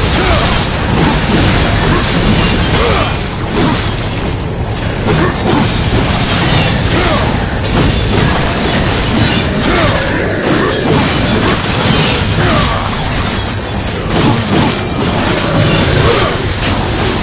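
Magic blasts crackle and burst again and again.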